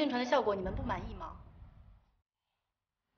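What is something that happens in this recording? A young woman asks a question with surprise, close by.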